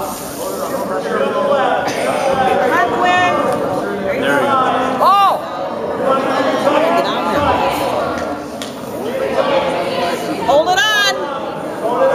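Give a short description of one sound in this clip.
A man shouts commands in a large echoing hall.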